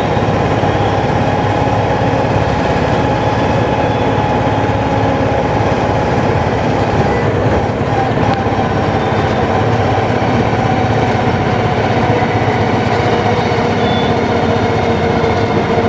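A vehicle rumbles steadily while driving along a road.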